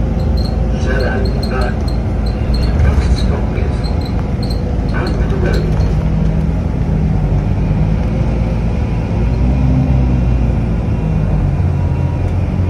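A vehicle's engine hums steadily with road rumble from inside the car.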